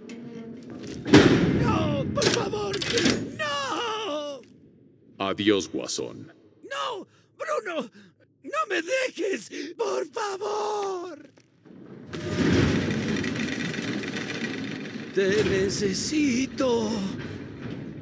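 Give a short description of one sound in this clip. A man pleads frantically and desperately.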